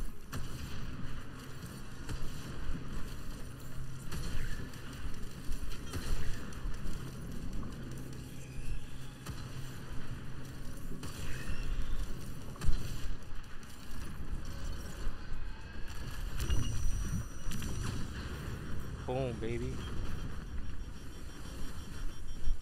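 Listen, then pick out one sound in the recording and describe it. Gunfire and blasts ring out in rapid bursts.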